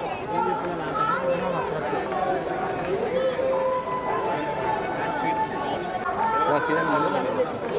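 A crowd of men and women talks and calls out all around, outdoors.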